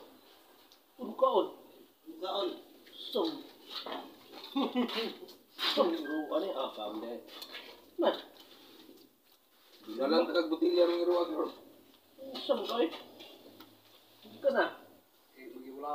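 Adult men talk casually close by.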